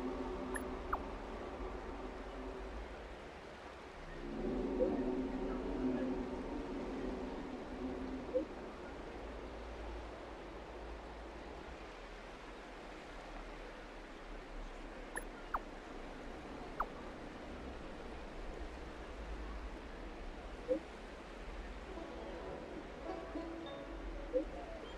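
A phone gives short chimes as messages arrive.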